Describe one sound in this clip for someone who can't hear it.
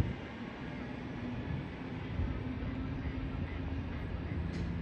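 A train rumbles as it approaches in the distance.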